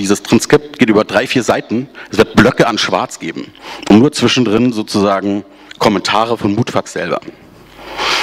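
A man speaks with animation into a microphone, heard through a loudspeaker in a large hall.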